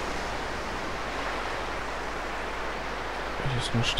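Waves wash gently onto a shore.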